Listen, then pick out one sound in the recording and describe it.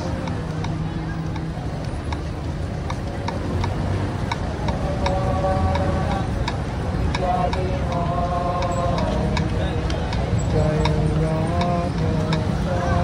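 A motorbike engine rumbles steadily close by.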